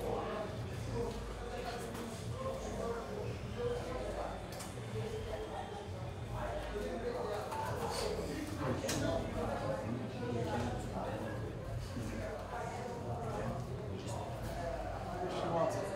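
A man speaks in a low, steady voice nearby.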